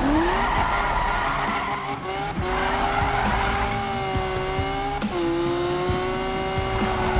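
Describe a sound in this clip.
A racing car engine roars and revs up, dropping briefly as it shifts gears.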